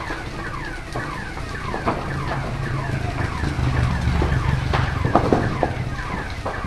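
A large fire roars steadily.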